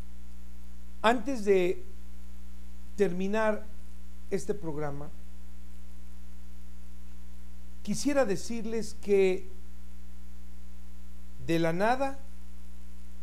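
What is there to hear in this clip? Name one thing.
A middle-aged man speaks calmly into a microphone in short phrases with pauses.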